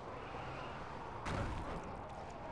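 A heavy body lands on the ground with a loud thud.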